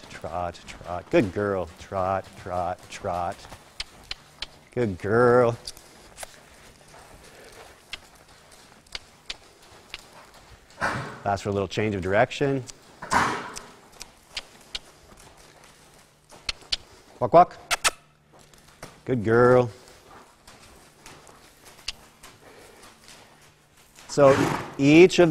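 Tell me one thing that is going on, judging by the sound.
A horse's hooves thud softly on loose dirt.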